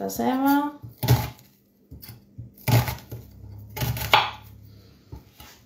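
A knife chops through an onion on a cutting board.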